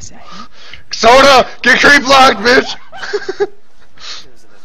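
A young man talks loudly and excitedly into a close microphone.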